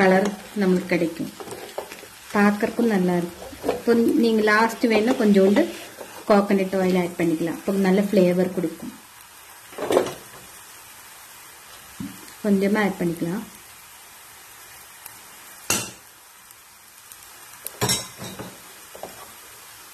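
A wooden spoon stirs and scrapes food in a pan.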